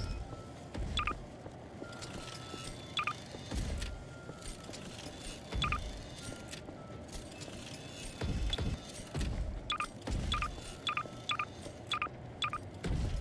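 A short electronic click sounds several times.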